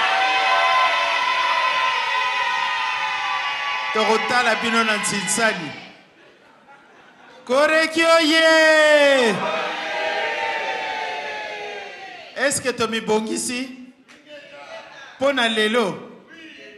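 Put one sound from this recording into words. A middle-aged woman sings loudly through a microphone, with long held notes echoing in a large hall.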